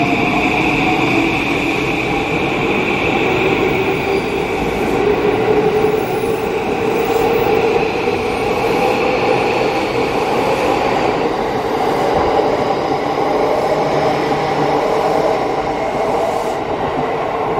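An electric train pulls away close by, its motor whine rising in pitch.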